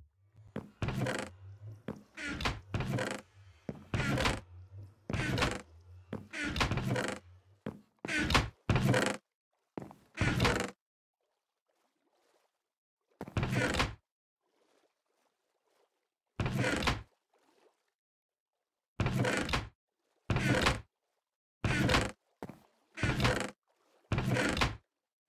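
A wooden chest creaks open and thuds shut, again and again.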